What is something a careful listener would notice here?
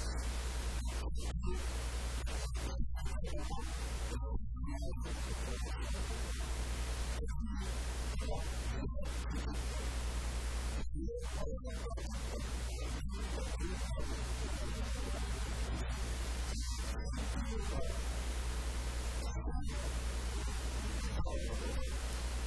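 A middle-aged man speaks forcefully into a microphone, heard through loudspeakers.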